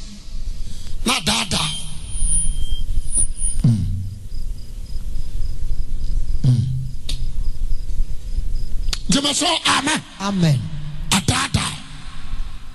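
A man preaches loudly through a microphone, shouting.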